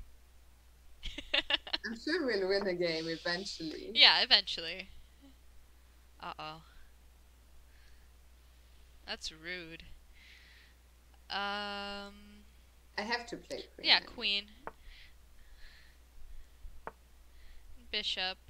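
A young woman talks with animation over a headset microphone.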